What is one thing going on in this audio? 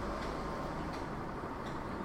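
Footsteps walk softly across a carpeted floor.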